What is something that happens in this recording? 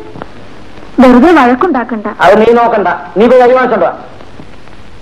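A woman speaks loudly and with animation, close by.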